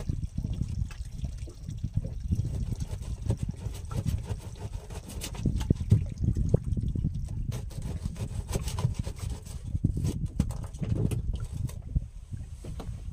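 Small waves slap against a wooden boat's hull.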